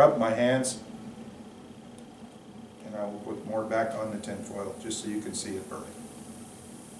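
A man speaks calmly and close by, explaining.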